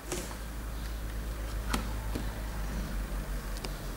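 A hand sets an e-reader down on a hard surface.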